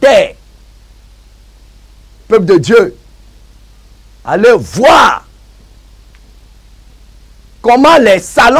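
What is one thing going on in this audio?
A man speaks emphatically into a close microphone, in short bursts with pauses.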